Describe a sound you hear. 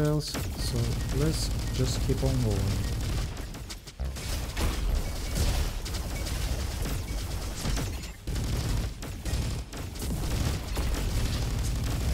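Gunfire rattles rapidly from a game weapon.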